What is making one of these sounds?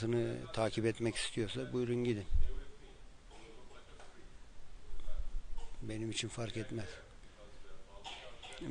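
A man speaks calmly and expressively, close to a microphone, with pauses.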